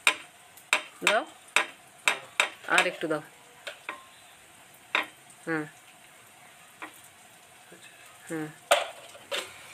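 A knife taps and scrapes as food is cut by hand.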